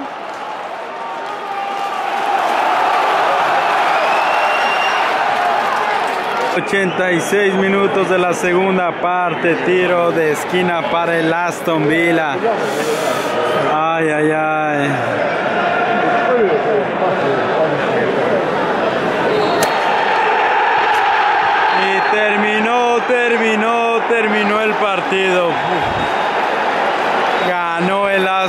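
A large stadium crowd roars and murmurs outdoors.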